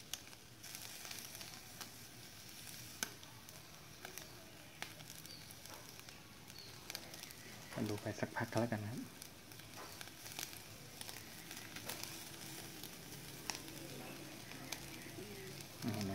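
Meat sizzles softly on a charcoal grill.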